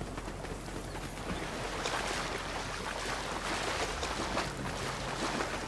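Water splashes as a figure wades through a stream.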